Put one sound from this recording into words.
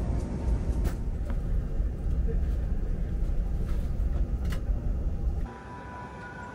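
An aircraft cabin hums with a low, steady rumble.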